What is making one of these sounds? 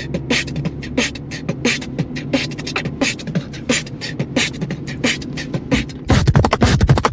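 A young man beatboxes a fast rhythm close by.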